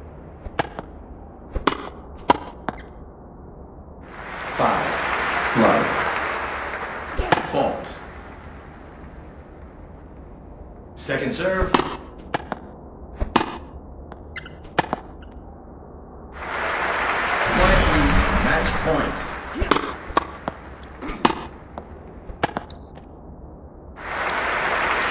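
A tennis ball is struck with sharp pops of a racket.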